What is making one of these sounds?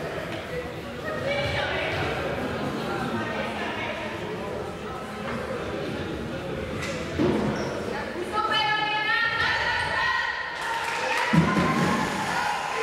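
A crowd of spectators murmurs and chats in a large echoing hall.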